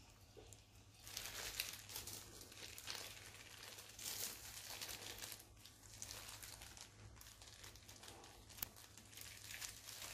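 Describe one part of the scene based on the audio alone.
Soil rustles and crumbles softly as hands press it into a pot.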